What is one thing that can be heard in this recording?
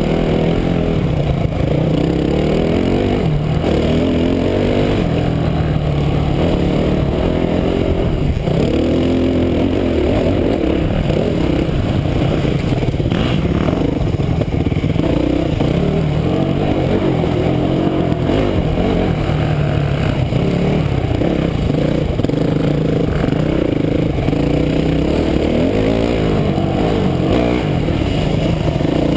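A dirt bike engine roars and revs up and down close by.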